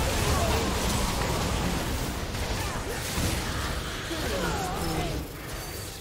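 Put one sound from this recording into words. Spell effects burst and crackle in a fast game battle.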